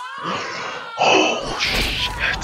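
A bearded man shouts with excitement.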